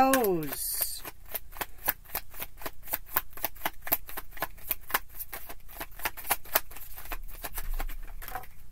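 Cards shuffle and riffle with quick soft clicks.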